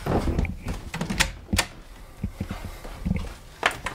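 A door handle clicks and a door swings open.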